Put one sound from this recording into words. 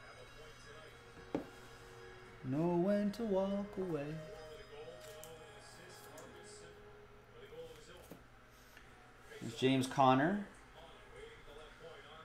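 Trading cards slide and tap against a table.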